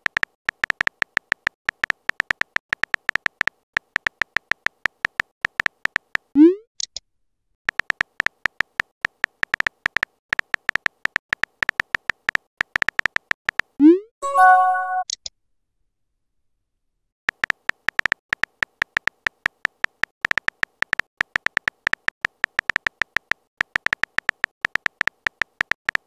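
Keyboard keys click rapidly as a message is typed.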